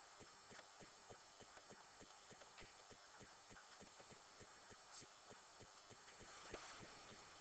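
A pen scratches and taps on paper.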